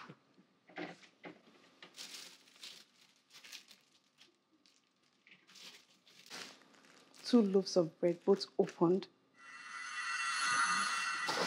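Plastic containers clatter and rustle as they are handled.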